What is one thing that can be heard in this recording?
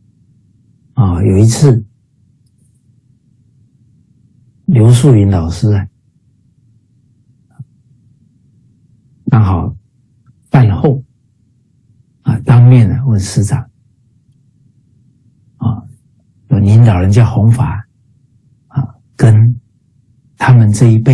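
A middle-aged man speaks with animation in short bursts over an online call.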